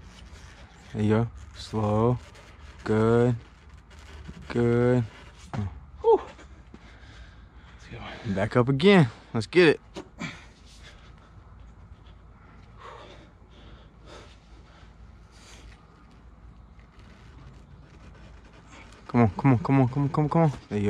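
A young man grunts with effort close by.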